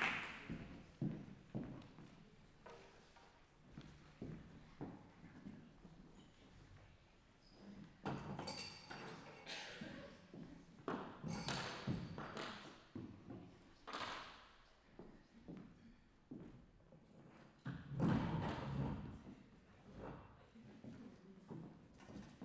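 High heels click on a wooden stage in an echoing hall.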